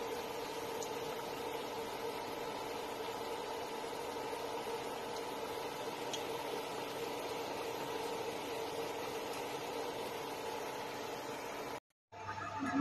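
Oil sizzles steadily as food fries.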